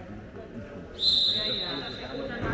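A whistle blows sharply in a large echoing hall.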